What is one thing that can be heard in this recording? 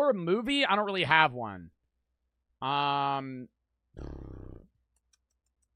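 A young man talks close into a microphone with animation, in short bursts.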